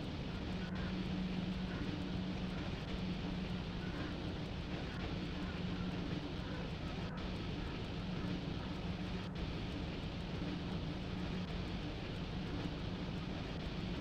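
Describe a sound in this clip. Train wheels rumble along the rails.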